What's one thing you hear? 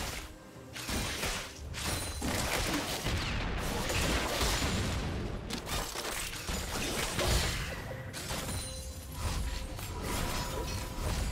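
Game spell effects and hits crash and whoosh in a rapid, busy battle.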